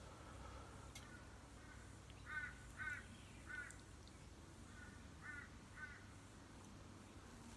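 A woman bites into food and chews close by.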